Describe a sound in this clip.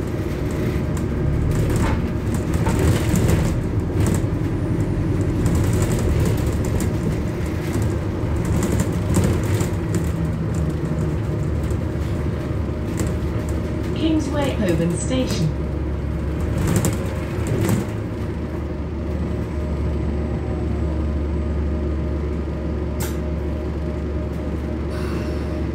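Fittings rattle inside a moving bus.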